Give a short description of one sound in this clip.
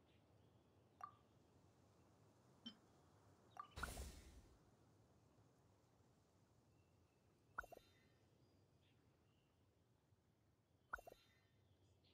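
Short soft interface clicks sound now and then.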